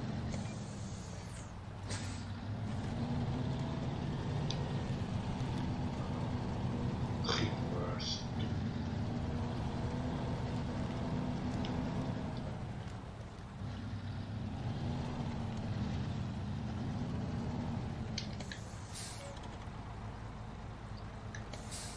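A heavy truck's diesel engine rumbles and revs as it drives.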